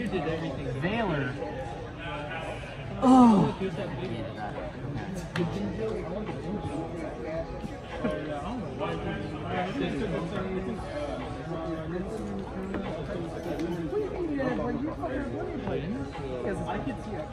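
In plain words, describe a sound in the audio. Cards tap and slide on a table.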